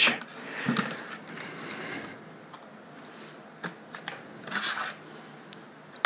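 A utility knife scrapes and cuts through stiff plastic.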